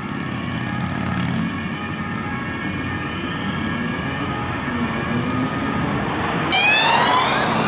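Motorcycles and cars drive past on a busy street.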